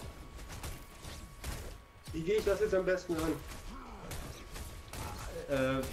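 A magical blast bursts with a bright whoosh.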